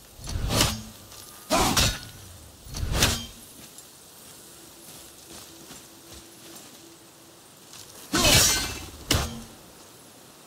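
An axe strikes hard with heavy metallic thuds.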